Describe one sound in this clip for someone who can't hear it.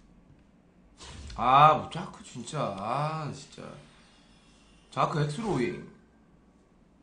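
A young man speaks casually, close to a microphone.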